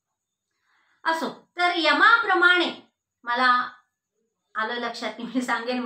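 A middle-aged woman speaks calmly and clearly, close by.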